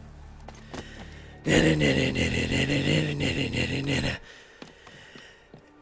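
Quick footsteps run across stone and then thump on wooden planks.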